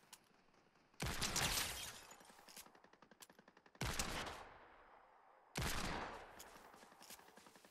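A gun fires loud single shots that echo away.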